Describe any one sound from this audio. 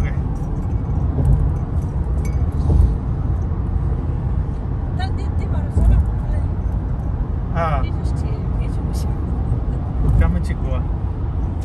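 A car's engine hums steadily inside the cabin.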